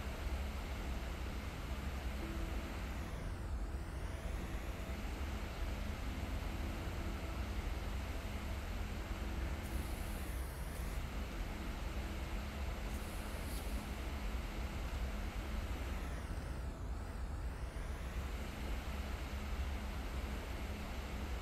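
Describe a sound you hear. A hoverboard hums and whooshes steadily.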